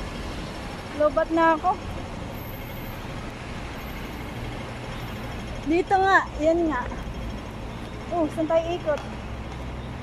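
A middle-aged woman speaks close by in short bursts.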